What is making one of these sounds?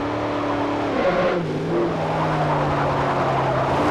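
Tyres squeal as a car corners hard.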